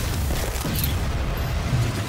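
A heavy gun fires in bursts.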